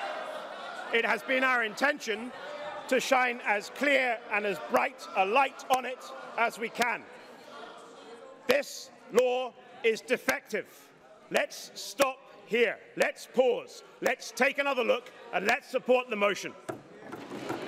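A middle-aged man speaks firmly into a microphone in a large echoing hall.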